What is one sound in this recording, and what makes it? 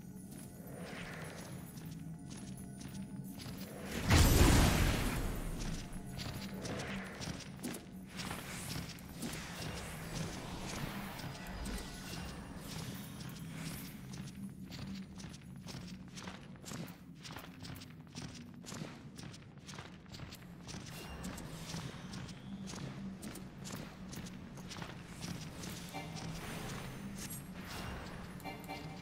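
Game music plays steadily throughout.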